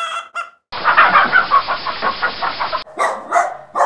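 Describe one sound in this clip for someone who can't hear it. A hen clucks.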